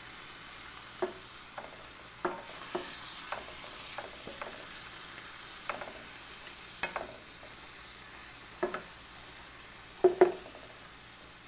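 A wooden spatula scrapes and knocks against a frying pan.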